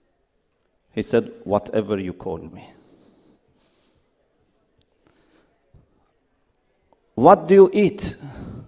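A man speaks over a loudspeaker in a large echoing hall, in calm bursts with pauses.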